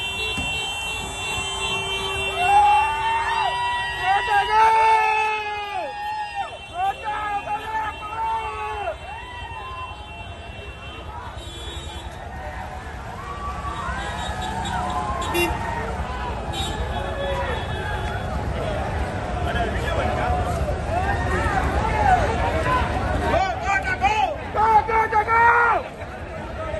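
A crowd of men shouts and cheers loudly outdoors nearby.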